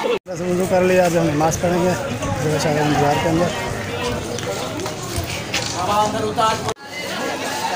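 A man talks close to the microphone.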